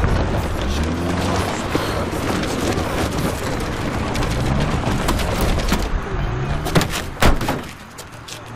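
A car engine rumbles as a car drives closer.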